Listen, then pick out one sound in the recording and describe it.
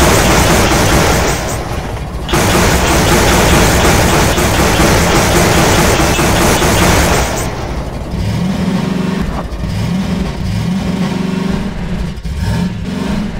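Tyres rumble over gravel.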